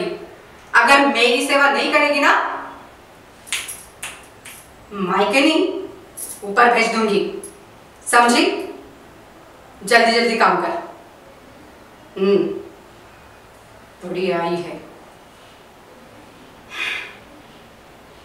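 A middle-aged woman speaks angrily in short bursts, close by.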